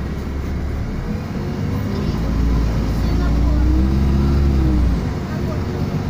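A bus engine revs up and then settles as the bus pulls away.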